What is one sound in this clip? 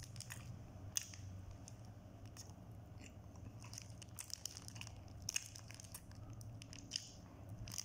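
A man chews food noisily, close up.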